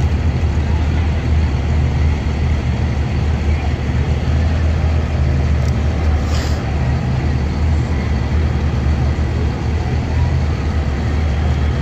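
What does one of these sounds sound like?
A second classic car engine hums as it drives slowly by.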